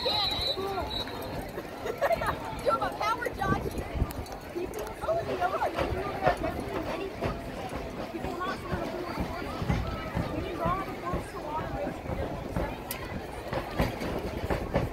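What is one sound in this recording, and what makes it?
A marching band's drums beat.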